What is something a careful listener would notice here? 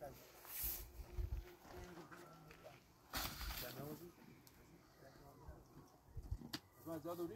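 A broom sweeps with scratchy brushing strokes over dry ground.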